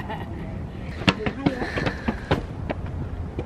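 Footsteps climb concrete stairs.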